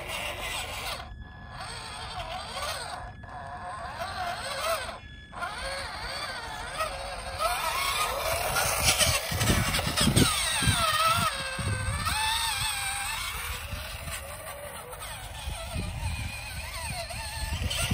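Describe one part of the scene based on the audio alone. A small electric motor whines, its pitch rising and falling.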